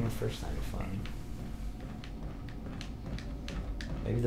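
Footsteps knock on a wooden floor at a steady walking pace.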